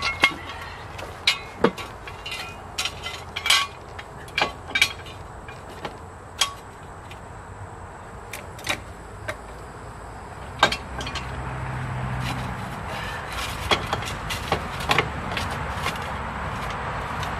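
Metal tools clank and click against a jack.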